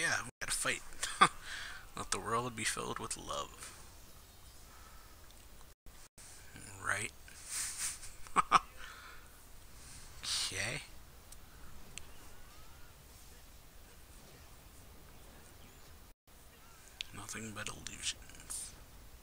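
A man talks casually into a microphone, close by, in bursts with pauses.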